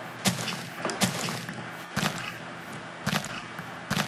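Leafy blocks snap and break apart.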